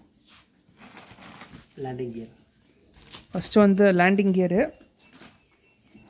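A plastic wrapper crinkles as an item is lifted out.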